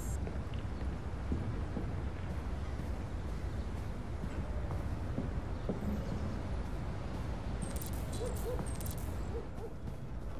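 Footsteps walk slowly on a wooden floor.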